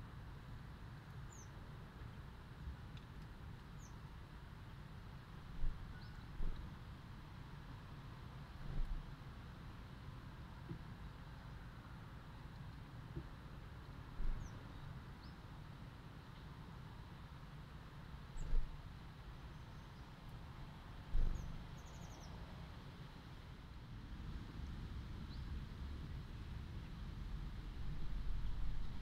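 Wind blows softly through leaves outdoors.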